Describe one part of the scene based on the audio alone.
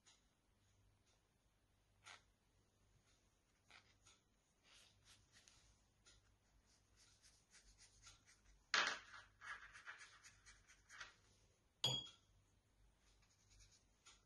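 A watercolor brush brushes across paper.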